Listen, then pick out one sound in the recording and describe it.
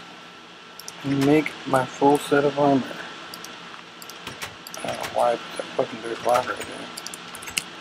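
A wooden door clicks open and shut.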